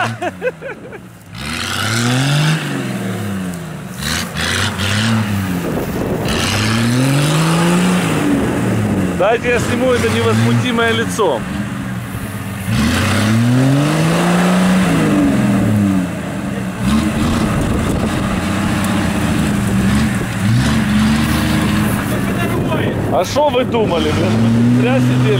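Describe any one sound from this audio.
Dry reeds swish and crackle against a vehicle.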